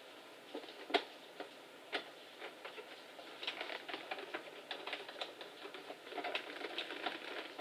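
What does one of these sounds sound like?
Metal parts click, clatter and rustle close by.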